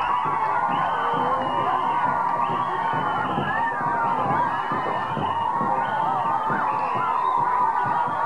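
A large crowd of women sings and ululates loudly outdoors.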